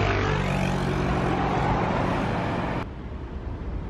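A motor scooter drives past close by.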